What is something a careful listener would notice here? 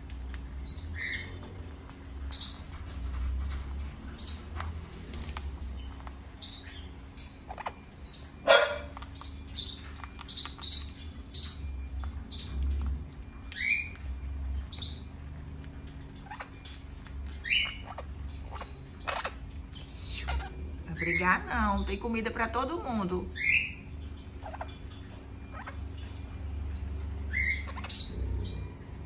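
Parrots give short, high chirps.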